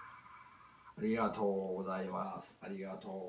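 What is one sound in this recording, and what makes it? An elderly man speaks warmly, close by.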